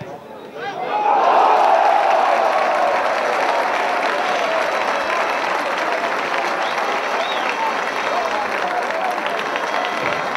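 A crowd in the stands cheers loudly.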